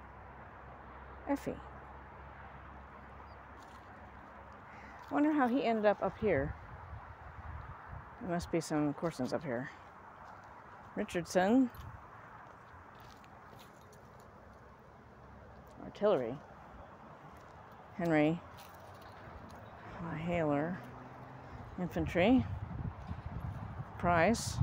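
A small dog's paws rustle through dry fallen leaves on grass.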